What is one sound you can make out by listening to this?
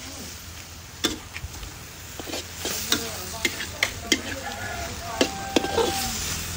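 A metal spatula scrapes and clanks against a metal wok.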